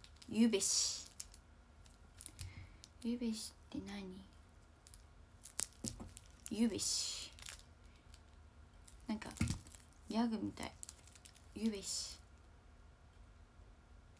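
Plastic wrappers crinkle in a young woman's hands.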